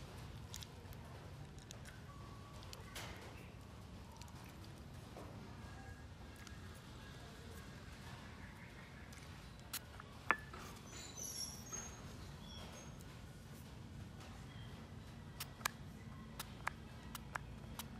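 A puppy eats noisily, chewing and lapping.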